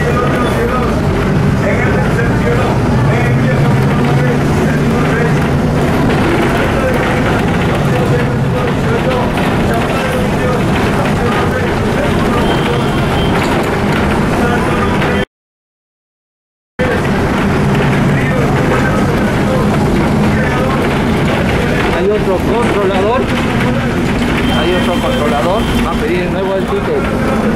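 A bus engine rumbles steadily while riding along a street.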